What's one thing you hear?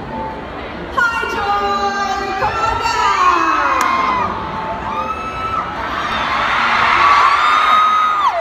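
A large crowd screams and cheers loudly.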